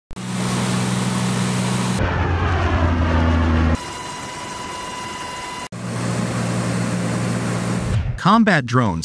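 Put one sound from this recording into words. A propeller engine drones steadily as an aircraft flies overhead.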